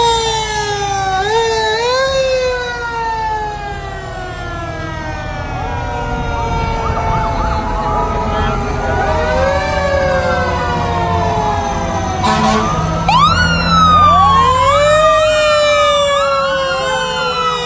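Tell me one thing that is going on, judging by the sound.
Vehicle engines rumble as a parade rolls slowly past.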